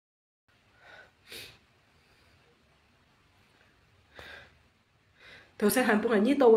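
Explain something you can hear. A young woman sniffles tearfully, close by.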